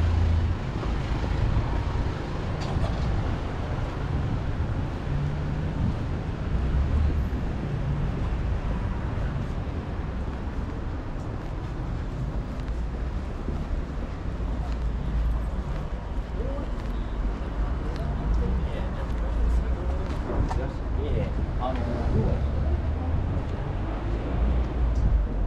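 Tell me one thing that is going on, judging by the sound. Traffic rumbles steadily on a nearby street, outdoors.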